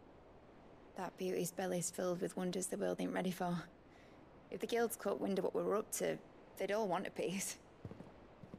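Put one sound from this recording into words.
A young woman speaks warmly and with animation, close by.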